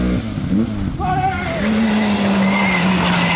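A second rally car engine screams as it approaches on a tarmac road.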